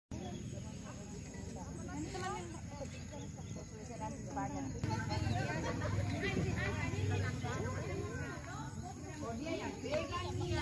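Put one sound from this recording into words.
A group of women chatter and call out outdoors at a distance.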